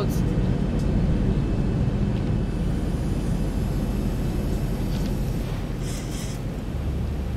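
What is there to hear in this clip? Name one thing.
A jet engine roars with a steady low rumble.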